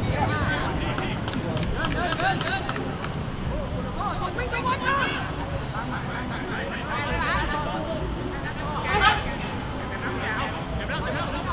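Young men shout to each other across an outdoor field.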